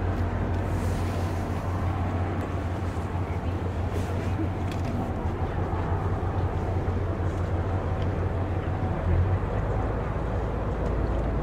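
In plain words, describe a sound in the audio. A jet airliner's engines rumble steadily as it taxis at a distance.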